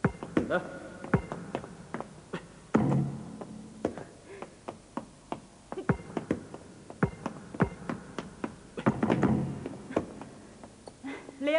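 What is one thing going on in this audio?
A basketball bounces repeatedly on a hard floor in a large echoing hall.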